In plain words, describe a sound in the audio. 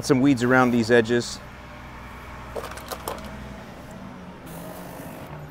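A garden sprayer hisses softly as it sprays.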